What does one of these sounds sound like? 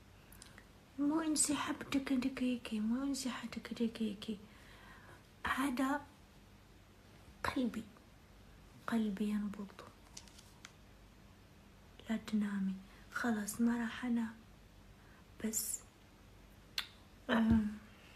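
A young woman speaks calmly and close to a microphone, in short bursts with pauses.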